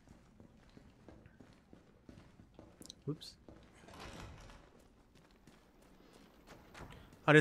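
Boots step slowly and quietly on a hard floor.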